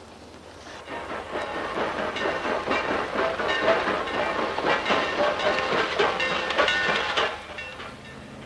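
A steam train rumbles and clatters past.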